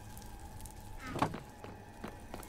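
A wooden chest lid thuds shut.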